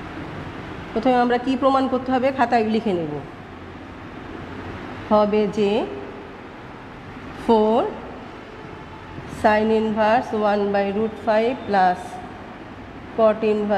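A woman speaks calmly and clearly, close by, as if explaining.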